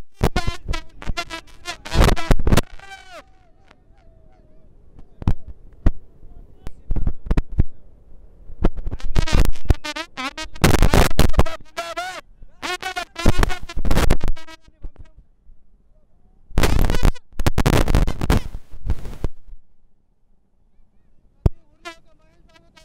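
A crowd of men shouts and cheers outdoors.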